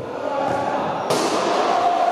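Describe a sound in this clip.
A ball is struck hard with a thud in a large echoing hall.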